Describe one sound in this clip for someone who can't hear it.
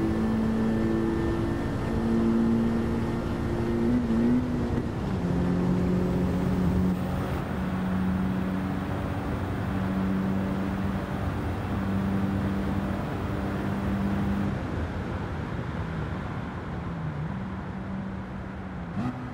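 Tyres hum and rush on the road.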